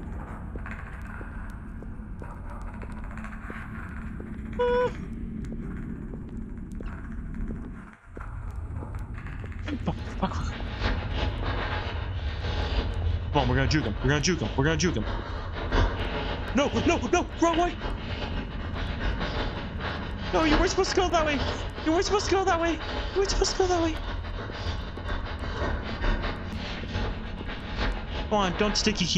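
A torch flame burns with a low, steady roar.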